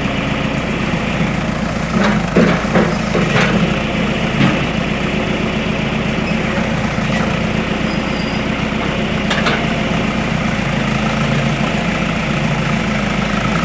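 A diesel engine idles and rumbles steadily close by.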